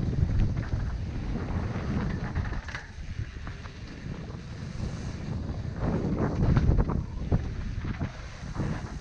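A bike rattles and clatters over bumps.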